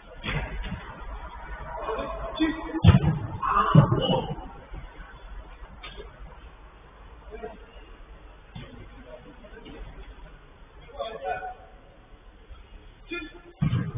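Young men shout to each other in the distance in a large echoing space.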